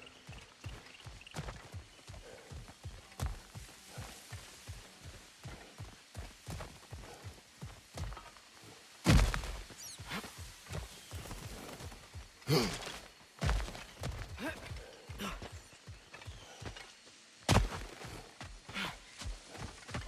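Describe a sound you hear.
Heavy footsteps crunch on rocky ground.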